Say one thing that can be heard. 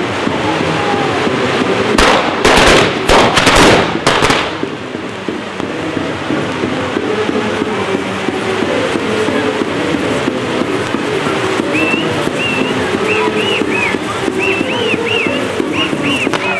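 Fireworks crackle and hiss steadily, close by.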